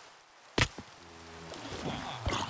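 A zombie groans low.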